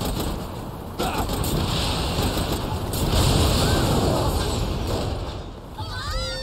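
A rocket explosion booms and rumbles.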